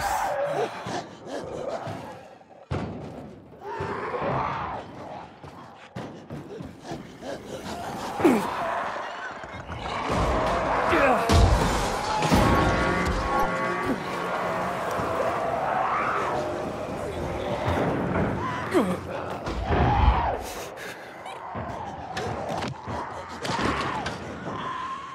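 Footsteps pound quickly while running and jumping.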